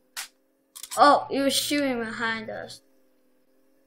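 A young boy speaks with animation close to a microphone.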